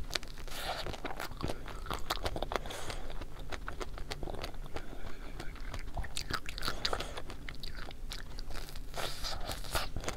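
A young woman bites into an ice cream bar close to a microphone.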